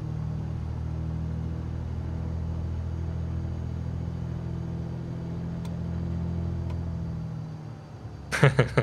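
A small propeller plane's engine drones steadily and then fades.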